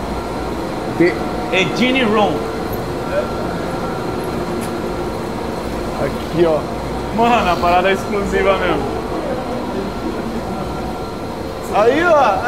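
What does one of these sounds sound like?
Young men talk and call out excitedly nearby.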